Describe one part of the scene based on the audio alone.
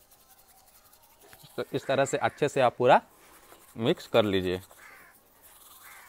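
A toothbrush scrubs against teeth.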